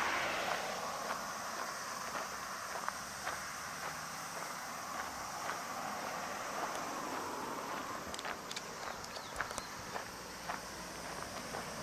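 Cars pass by on a nearby road.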